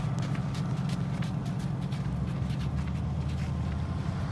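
Footsteps run on packed sand.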